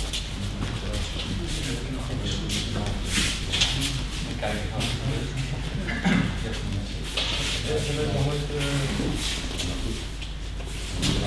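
A man speaks calmly across a large echoing hall.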